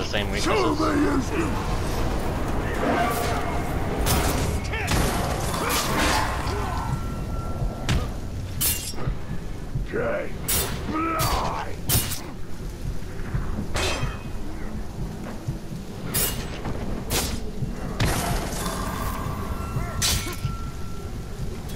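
Monstrous creatures growl and snarl.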